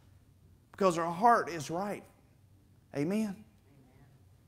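A man speaks loudly and briefly in a large, echoing room.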